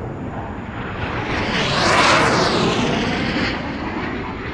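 A jet roars loudly as it sweeps past close by.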